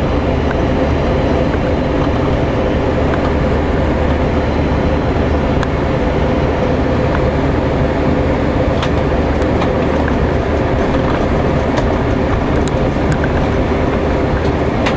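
Raindrops tap lightly on a window.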